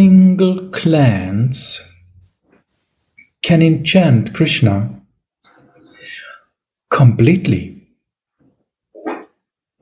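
A middle-aged man speaks with animation over an online call.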